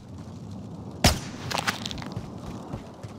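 A rifle fires a single loud shot with a short echo.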